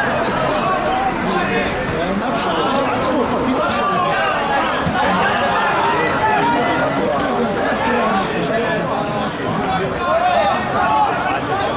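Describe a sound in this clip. A crowd of spectators chatters and calls out across an open-air stadium.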